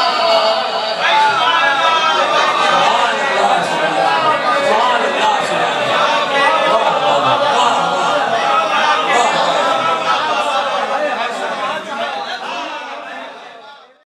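A man sings into a microphone in a melodic, drawn-out voice.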